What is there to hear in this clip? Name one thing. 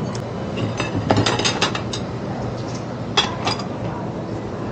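Dishes clatter as they are gathered up.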